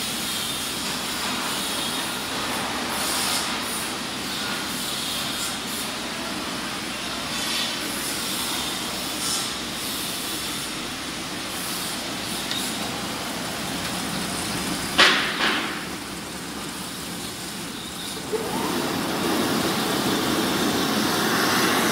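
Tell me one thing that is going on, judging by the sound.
Industrial machinery runs with a steady whirring hum.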